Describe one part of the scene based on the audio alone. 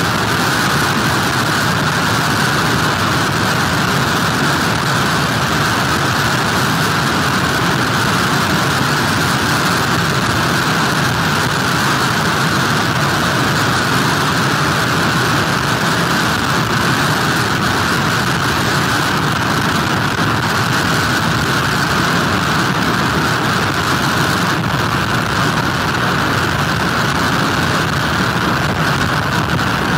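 Strong wind roars steadily outdoors.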